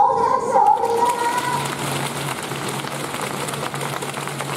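A crowd claps and applauds in a large echoing hall.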